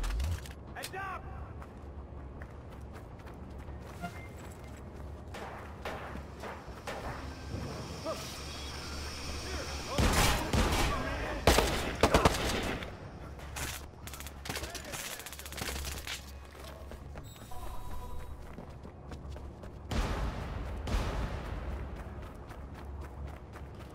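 Footsteps run over gravel and dirt.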